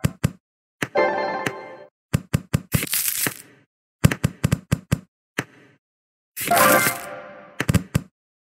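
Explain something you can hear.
Cheerful chimes ring out as matches clear.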